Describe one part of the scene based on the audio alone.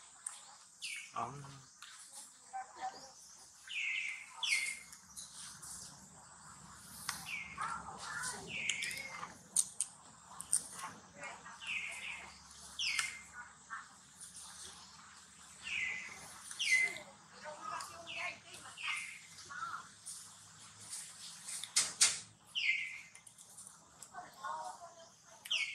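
A small monkey chews and nibbles on food close by.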